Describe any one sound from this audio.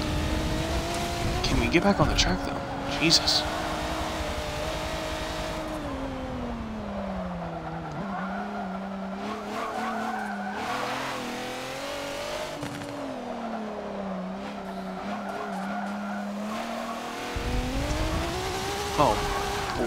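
A racing car engine roars, its pitch dropping and climbing as the car slows for corners and speeds up again.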